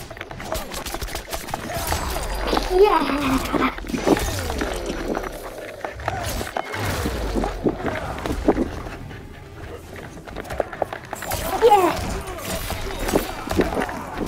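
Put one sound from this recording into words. Heavy blows land with wet, fleshy impacts.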